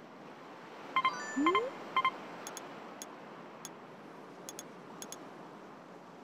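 Game menu beeps click sharply.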